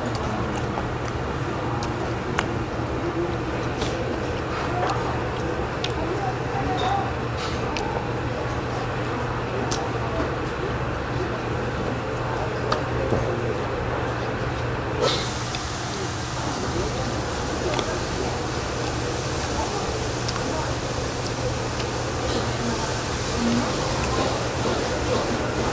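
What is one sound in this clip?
Chopsticks click against bowls.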